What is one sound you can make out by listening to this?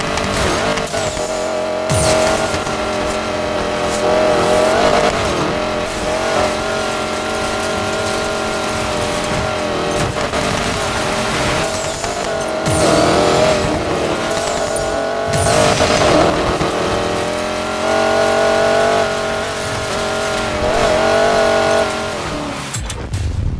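A powerful car engine roars steadily at high speed.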